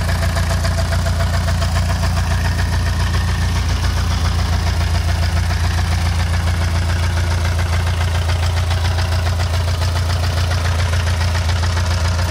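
A homemade tractor with a car petrol engine idles with an even, throbbing hum.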